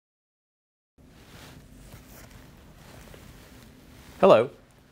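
Fabric rustles as a man takes off a face mask.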